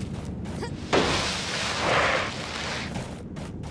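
Rock crumbles and breaks apart with a rushing burst.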